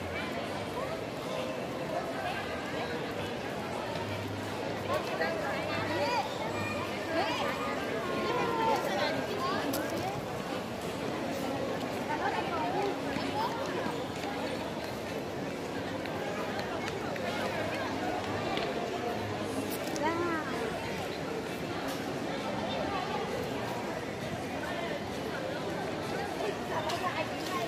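A crowd of people chatters outdoors.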